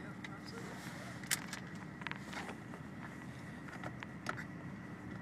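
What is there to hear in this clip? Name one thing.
A car engine hums steadily from inside the cabin as it drives along.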